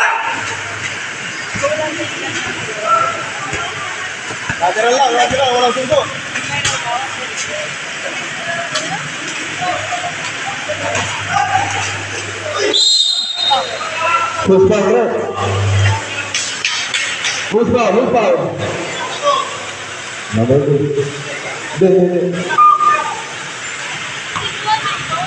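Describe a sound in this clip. A crowd of spectators chatters and shouts nearby.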